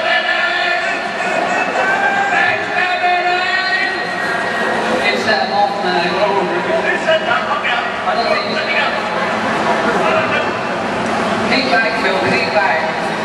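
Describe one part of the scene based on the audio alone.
A crowd of people chatters in a large, busy hall.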